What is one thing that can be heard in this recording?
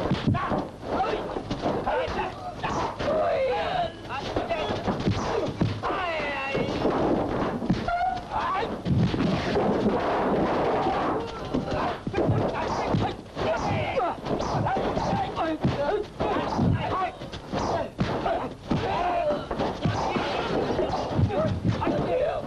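Men shout and grunt as they fight.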